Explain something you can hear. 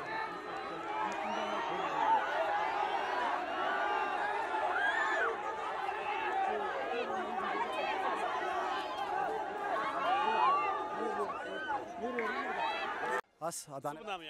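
A crowd of fans cheers and shouts excitedly nearby.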